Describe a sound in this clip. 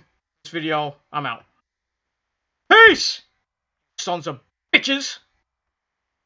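A man talks with animation close to a microphone, with pauses.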